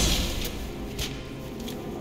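A melee blow strikes with a heavy thud.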